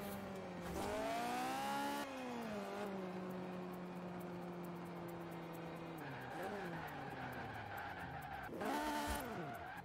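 A car engine revs hard, rising and dropping in pitch as gears shift.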